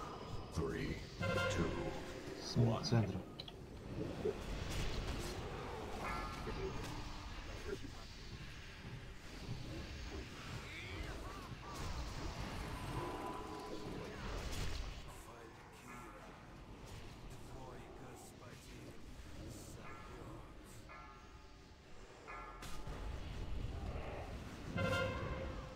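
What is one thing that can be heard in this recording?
Spell effects crackle and whoosh in a busy battle.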